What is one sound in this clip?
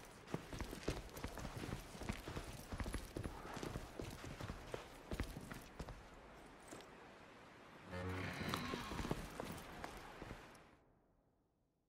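Boots crunch on sandy ground as soldiers walk.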